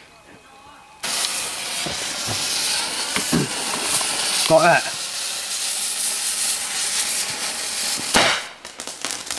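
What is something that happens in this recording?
A firework fountain hisses and crackles loudly as it sprays sparks.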